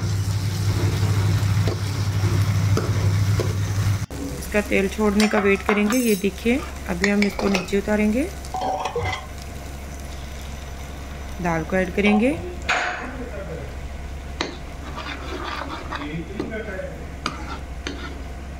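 A metal spoon scrapes and stirs in a frying pan.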